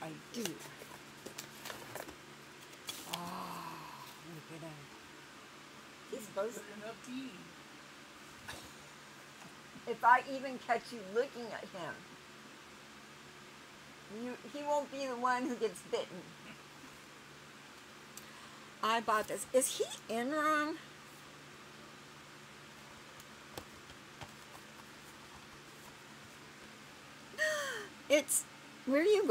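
Cardboard packaging rustles in a woman's hands.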